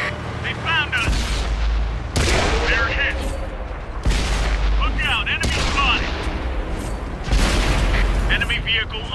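Tank guns fire with loud booming blasts.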